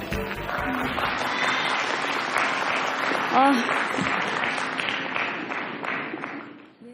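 A crowd applauds steadily in a large echoing hall.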